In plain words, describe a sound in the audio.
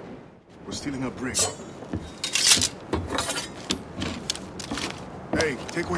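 Metal gear clinks and rattles as it is picked up.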